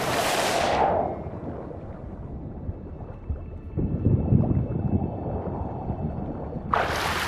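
Water churns in muffled strokes underwater.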